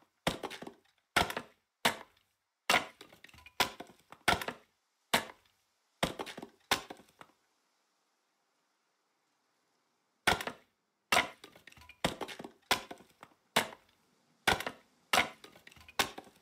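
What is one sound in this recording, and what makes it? Sharp blows chop at wood again and again, with a short pause in the middle.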